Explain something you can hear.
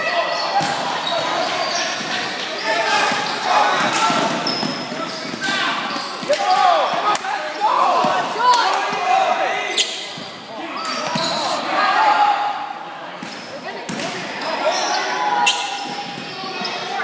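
Players shout and call out across a large echoing gym.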